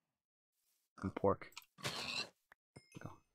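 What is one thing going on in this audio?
A pig squeals as it is struck.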